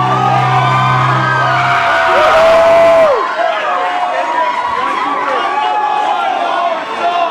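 Electric guitar feedback squeals and wails through loud amplifiers.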